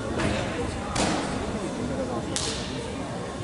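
A gymnast's feet thud on a sprung floor mat.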